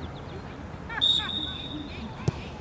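A referee's whistle blows one short blast.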